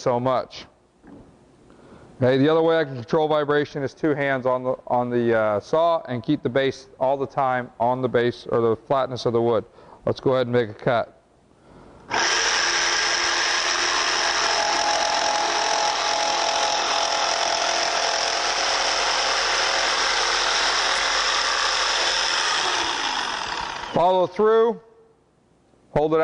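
A man speaks calmly into a clip-on microphone.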